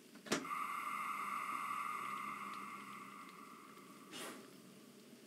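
A steam locomotive hisses steadily close by.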